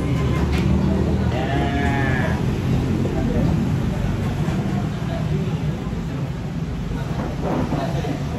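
Children chatter in the background of a busy room.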